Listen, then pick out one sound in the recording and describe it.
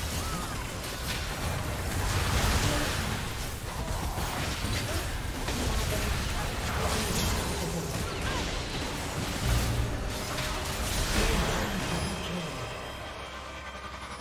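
Game spell effects and explosions crackle and boom in a battle.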